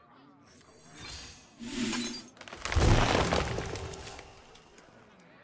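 Soft game effects whoosh and chime as cards are played.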